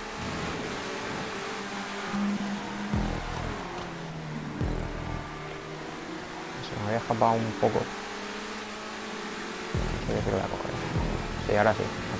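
A racing car engine hums steadily and shifts gears.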